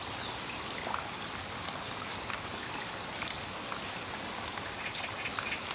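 Water drips and patters from a roof edge.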